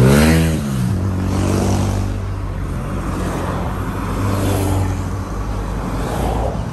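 Car engines hum as cars drive past close by.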